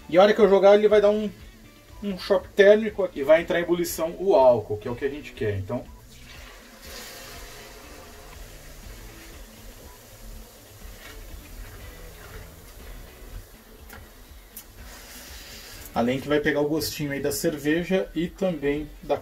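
A spatula scrapes and stirs rice in a pan.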